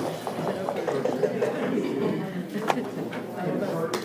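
Dice rattle and tumble onto a wooden board.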